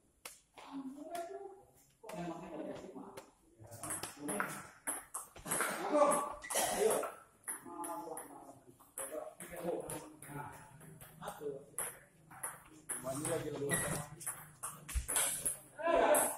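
A ping-pong ball clicks back and forth on a table and paddles.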